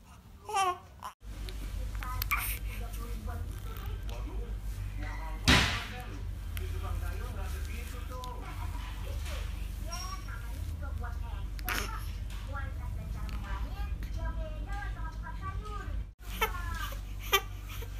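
A newborn baby cries and whimpers close by.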